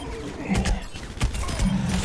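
A heavy gun fires rapid bursts of shots.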